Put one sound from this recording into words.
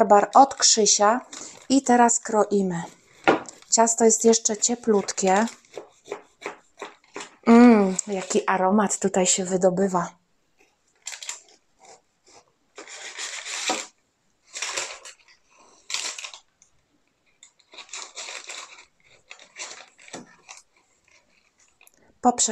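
A knife crunches through a crumbly cake.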